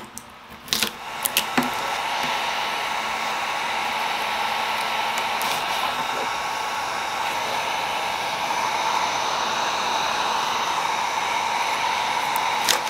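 A metal scraper scrapes and crackles against softened varnish on wood.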